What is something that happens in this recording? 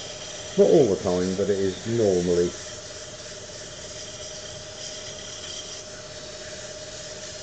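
A wood lathe hums steadily.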